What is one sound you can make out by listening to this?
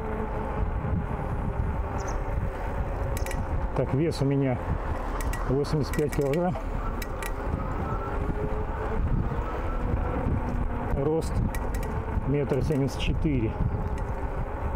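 Bicycle tyres roll steadily over smooth asphalt.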